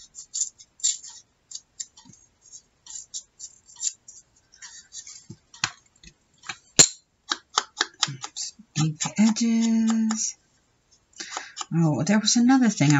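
Paper crinkles and rustles between fingers close by.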